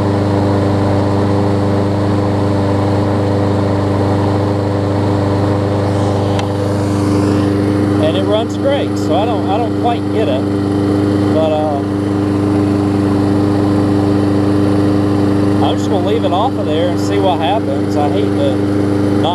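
A lawn mower engine runs with a steady, close rumble.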